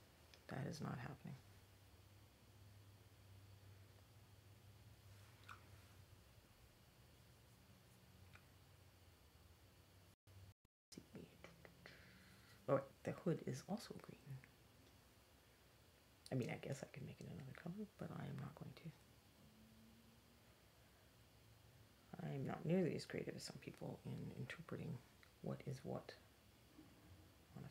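A woman talks calmly and closely into a microphone, in short bursts.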